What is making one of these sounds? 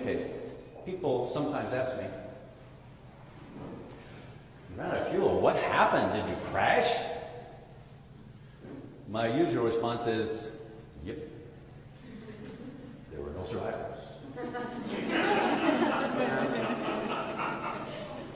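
A middle-aged man speaks with animation in a large echoing room.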